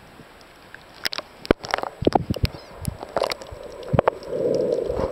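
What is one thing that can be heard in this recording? Water splashes and laps close by at the surface.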